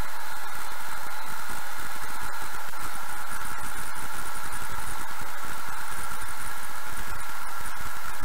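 A car engine hums steadily at low speed.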